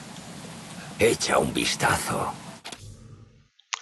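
A man speaks loudly and urgently.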